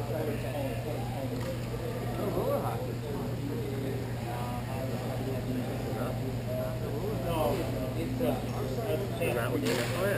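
Young players shout and call out to one another in a large echoing hall.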